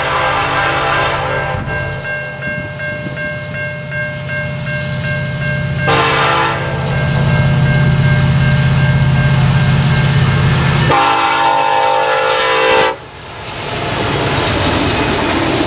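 A railroad crossing bell rings.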